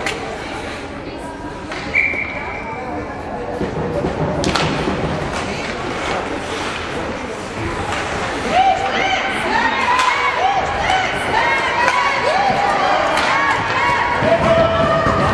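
Skates scrape and hiss across the ice in an echoing hall.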